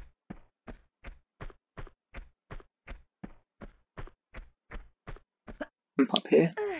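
Quick footsteps run steadily over a hard floor.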